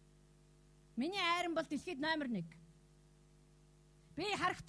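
A woman speaks close by.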